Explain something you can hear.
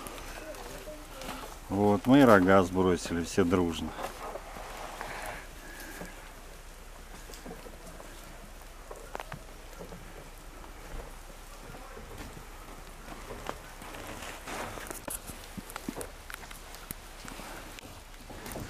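A moose munches hay close by.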